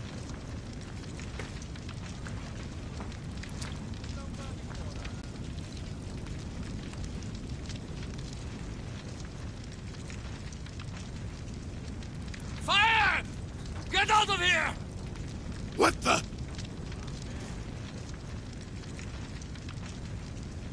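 A fire roars and crackles steadily.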